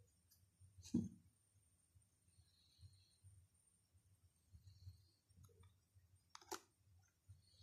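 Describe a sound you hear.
Playing cards tap and rustle softly as they are handled and set down.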